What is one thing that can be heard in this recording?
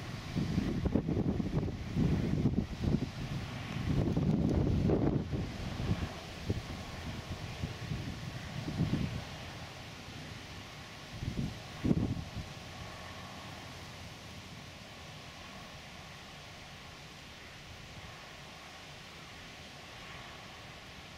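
A tractor engine hums steadily in the distance.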